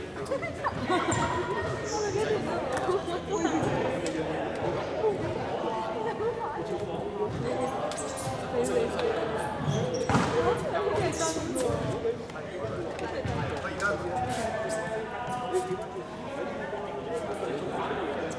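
Several young men talk over one another in a large echoing hall.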